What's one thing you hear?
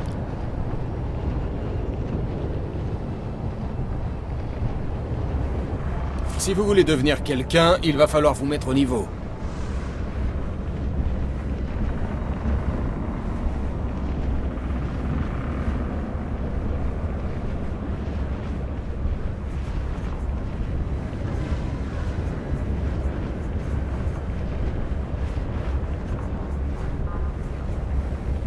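A hovering engine hums steadily and low.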